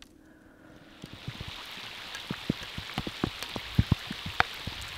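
Rain patters on a lake surface.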